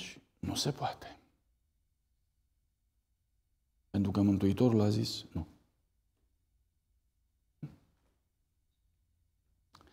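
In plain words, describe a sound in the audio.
A middle-aged man speaks calmly, with long pauses, into a microphone in a large room.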